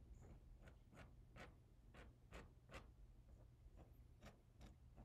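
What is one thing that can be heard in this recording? A paintbrush dabs and scratches against a canvas in short, quick strokes.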